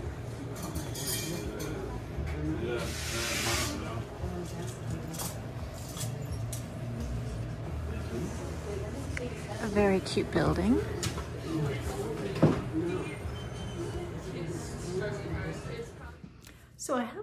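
A busy room hums with murmuring chatter and clatter.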